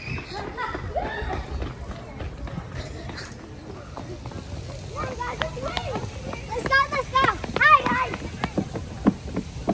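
Young children shout and squeal playfully nearby.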